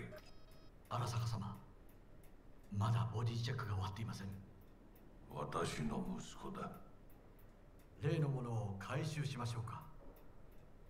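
A second man answers politely in a low voice.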